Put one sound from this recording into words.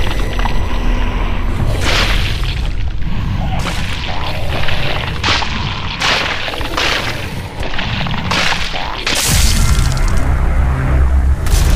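Clawed hands slash and tear at flesh.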